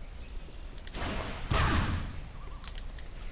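A magic spell blasts with a burst of fiery energy.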